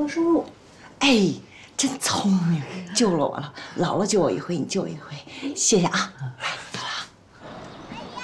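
A woman speaks warmly and gratefully.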